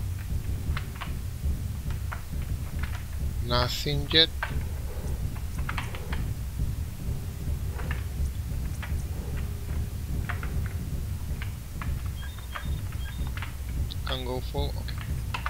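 A heavy walking machine rumbles steadily.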